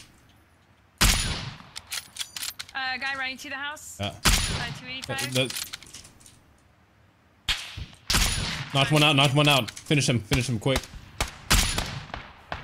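A bolt-action sniper rifle fires single shots.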